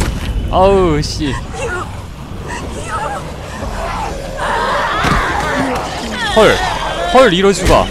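A girl cries and sobs close by.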